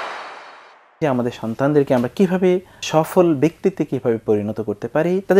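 A middle-aged man speaks calmly and clearly into a microphone, close by.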